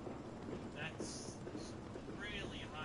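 Steam hisses from a locomotive.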